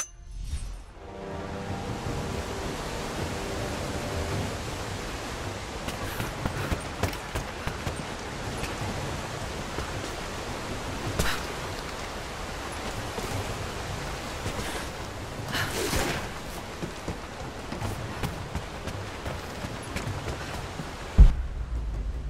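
Water roars loudly as it pours down a waterfall.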